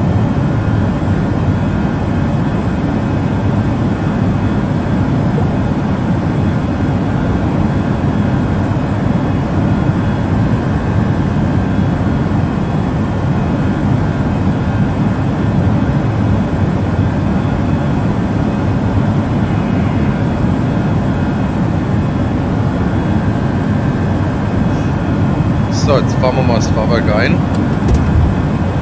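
Jet engines hum with a steady low roar in flight.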